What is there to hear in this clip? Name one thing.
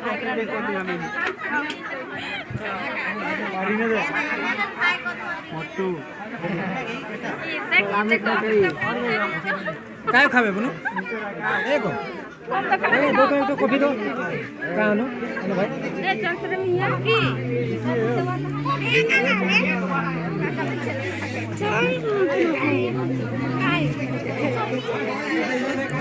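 A crowd of men and women chatter and laugh close by.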